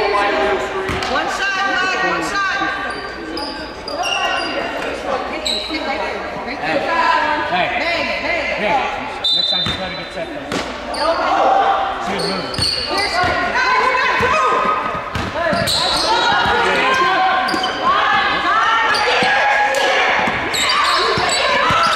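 Young women players call out to each other across the court.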